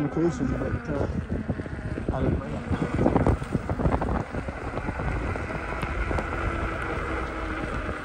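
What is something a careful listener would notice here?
An electric motorbike whirs along the street.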